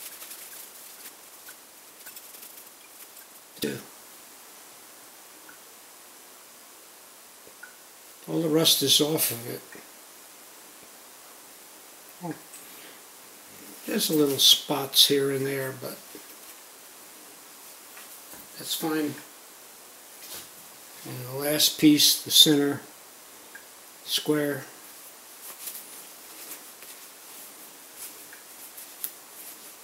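A paper towel rustles and crinkles in hands.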